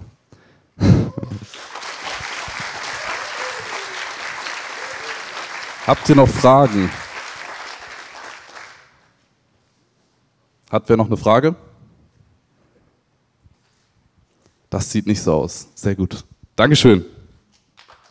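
A young man speaks in short bursts into a microphone over loudspeakers.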